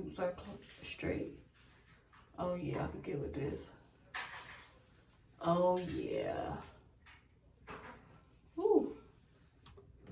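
A woman talks calmly and close by, in bursts with pauses.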